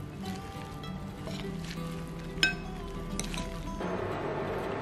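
A spoon clinks against a glass bowl while mixing.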